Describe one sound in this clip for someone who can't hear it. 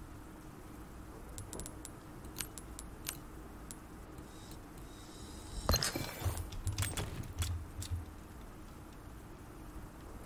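Menu clicks tick softly.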